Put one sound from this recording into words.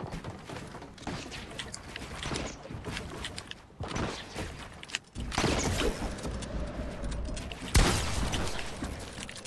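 Footsteps patter on wooden planks.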